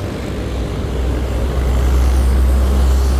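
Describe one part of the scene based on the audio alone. A bus engine rumbles close by.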